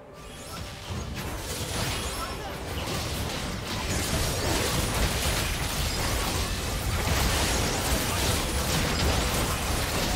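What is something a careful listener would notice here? Spell blasts, hits and explosions from a video game fight crackle and boom steadily.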